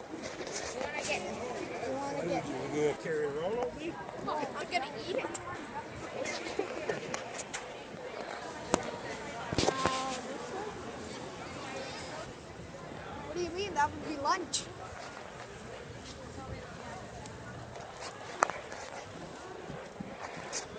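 A crowd of people murmurs and chatters in a large, busy hall.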